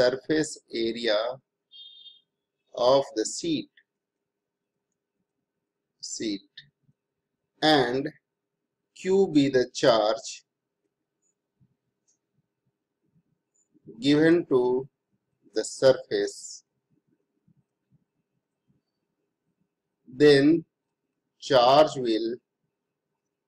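A man speaks calmly into a close microphone, explaining in short phrases with pauses.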